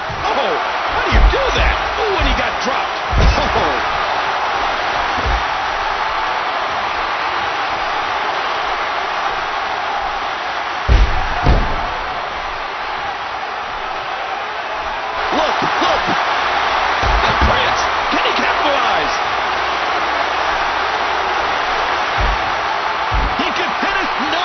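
A large crowd cheers and roars steadily in an arena.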